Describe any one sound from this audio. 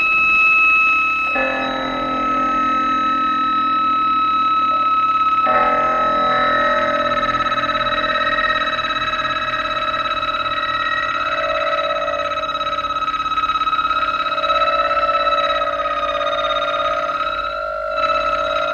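An electric guitar plays a sustained melody with a live band.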